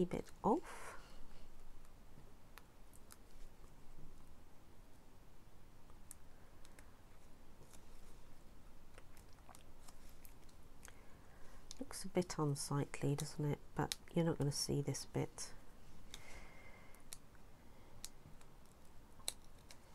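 Paper crinkles as it is folded by hand.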